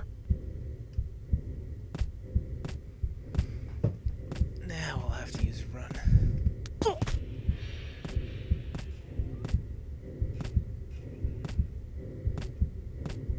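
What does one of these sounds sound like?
Footsteps clunk on metal ladder rungs in a steady rhythm.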